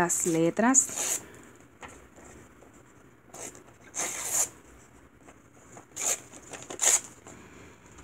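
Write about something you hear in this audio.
Paper rustles and tears in short rips.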